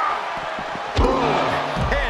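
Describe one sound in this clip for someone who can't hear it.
A heavy body thuds onto a mat.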